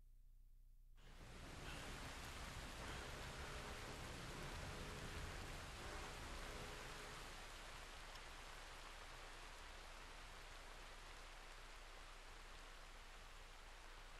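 Steady rain falls and patters all around.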